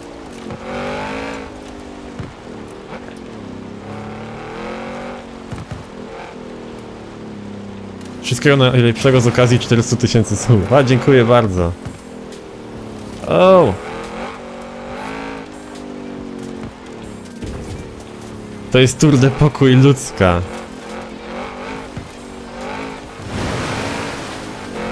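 A car engine hums and revs steadily as a vehicle drives fast.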